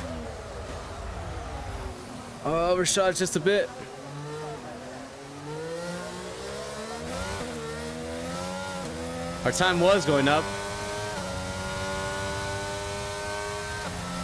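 A racing car engine whines, rising in pitch and dropping again as gears change.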